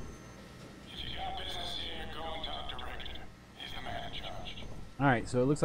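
A man's voice speaks in a game, heard through a speaker.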